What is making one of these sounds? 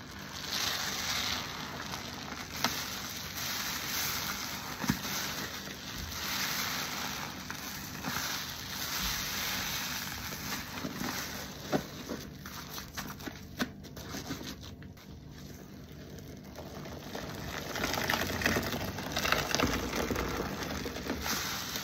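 A wet, foamy sponge squelches as hands squeeze it.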